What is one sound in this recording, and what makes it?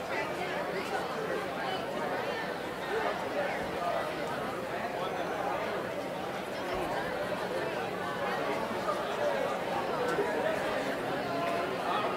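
A crowd of children chatters in a large echoing hall.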